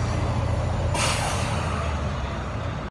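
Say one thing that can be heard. Air brakes hiss sharply.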